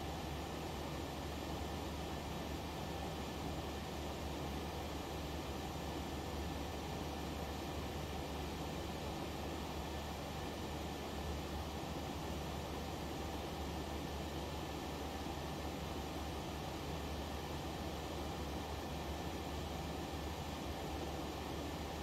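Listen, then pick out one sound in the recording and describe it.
Jet engines roar in a steady, even drone.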